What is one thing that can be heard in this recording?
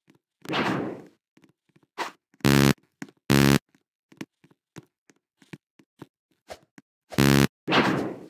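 Light footsteps patter on a hard floor.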